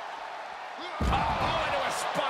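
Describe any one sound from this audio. A body slams hard onto the floor with a heavy thud.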